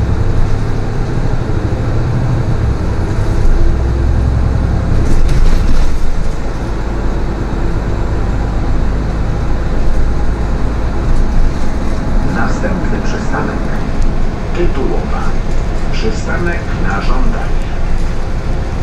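Tyres roll on smooth asphalt.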